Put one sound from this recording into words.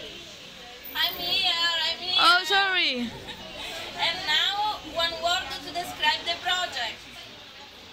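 A young woman speaks with animation and laughs close by.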